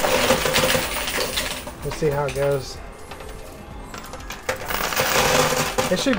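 Coins and chips clink and clatter as a machine pushes them along.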